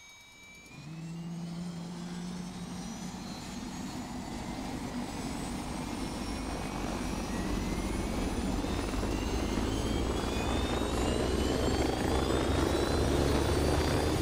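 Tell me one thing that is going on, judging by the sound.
A helicopter engine starts up and its rotor whine rises steadily as it lifts off.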